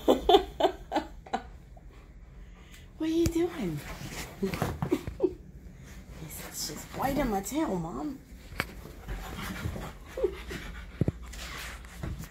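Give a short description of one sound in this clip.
Dogs scuffle and paw on a leather sofa.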